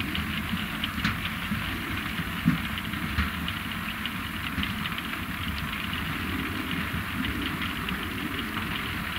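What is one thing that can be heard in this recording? A harvester engine rumbles steadily.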